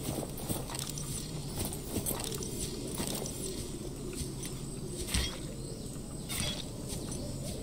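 Footsteps rustle through grass at a steady walking pace.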